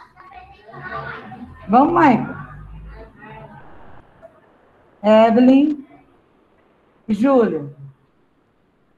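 A woman speaks through a mask over an online call.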